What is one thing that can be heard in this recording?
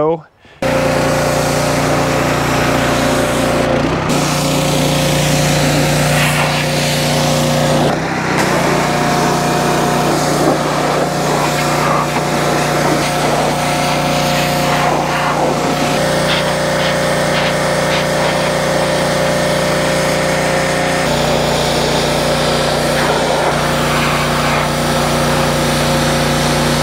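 A pressure washer engine runs steadily nearby.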